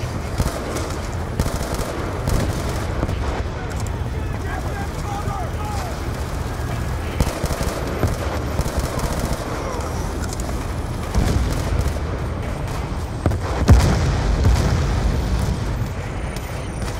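Rifles fire in rapid bursts.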